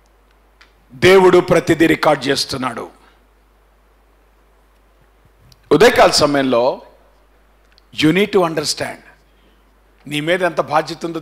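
A man speaks with emphasis into a microphone, in bursts with pauses.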